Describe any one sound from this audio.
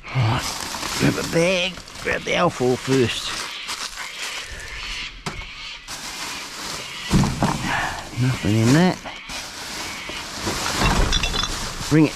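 Plastic rubbish bags rustle and crinkle as hands rummage through them.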